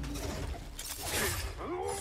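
A blade slashes in a quick struggle.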